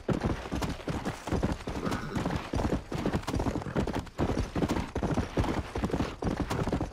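A horse's hooves thud rapidly on a dirt trail at a gallop.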